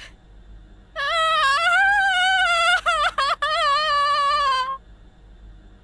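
A young girl wails and sobs loudly, close by.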